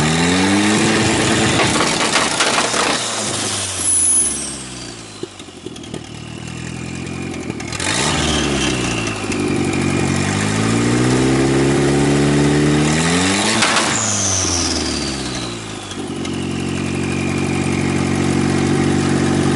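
A car engine revs up and down loudly outdoors.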